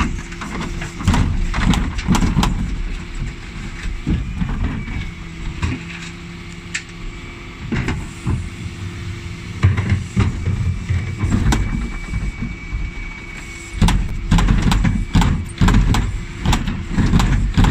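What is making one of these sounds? A bin lift on a garbage truck whirs and clanks as it tips bins.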